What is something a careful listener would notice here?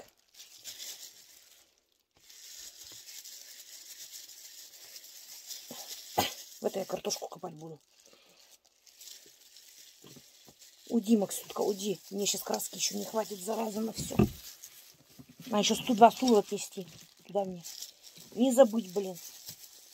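Gloved hands rustle and squelch through wet hair.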